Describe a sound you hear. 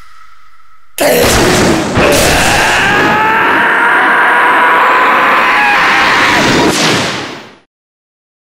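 A young man shouts a long, drawn-out battle cry.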